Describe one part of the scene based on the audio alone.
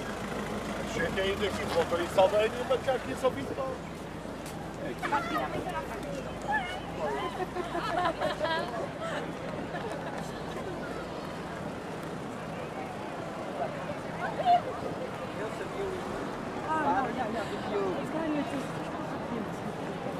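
Men and women chat in passing nearby, outdoors.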